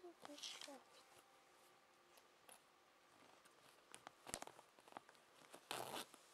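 Fabric rustles and brushes right against the microphone.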